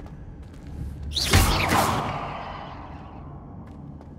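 A fiery blast bursts with a loud whoosh and fades away.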